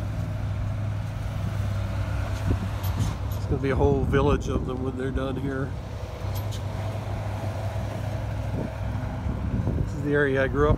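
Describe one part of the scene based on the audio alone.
A heavy diesel engine rumbles steadily nearby.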